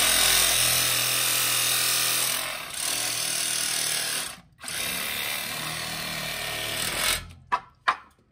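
A power tool whirs loudly at close range, then stops.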